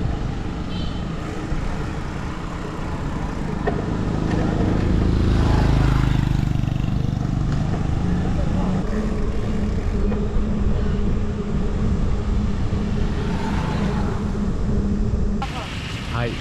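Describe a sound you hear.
Wind rumbles and buffets against the microphone while riding outdoors.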